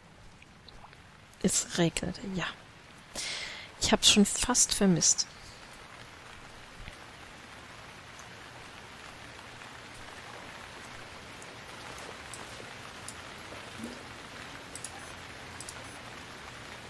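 Waves wash softly onto a shore.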